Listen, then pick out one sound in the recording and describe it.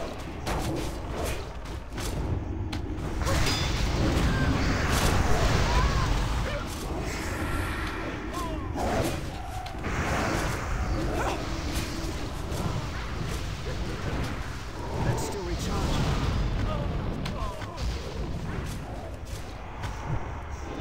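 Magic spells crackle and burst in a fantasy battle.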